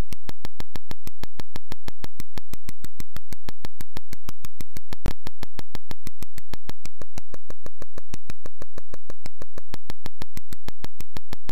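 Fast electronic game footstep clicks tick steadily.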